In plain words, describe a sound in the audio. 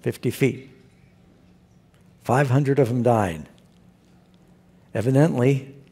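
A middle-aged man speaks calmly through a microphone in a large hall, pausing between phrases.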